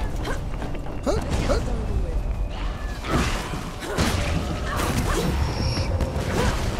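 Creatures groan and snarl nearby.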